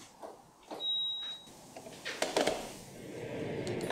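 A waffle iron lid closes with a soft thud.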